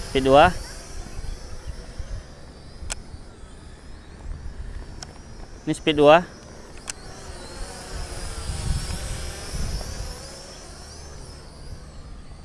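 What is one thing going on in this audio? A drone's motors whine high overhead, rising and falling in pitch.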